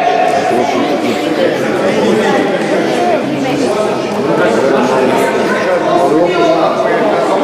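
A man talks to a group in a large echoing hall.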